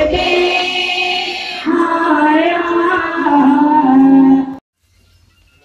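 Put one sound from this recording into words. A group of men and women sing together loudly.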